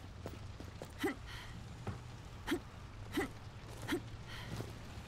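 Footsteps clank on a metal grating walkway.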